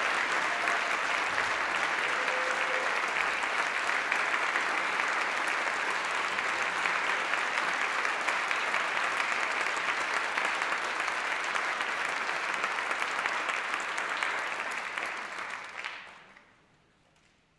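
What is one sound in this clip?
A large audience applauds loudly in a big hall, then the applause fades away.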